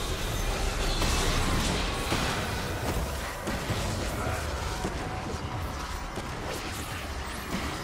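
Magic spells whoosh and crackle in a video game battle.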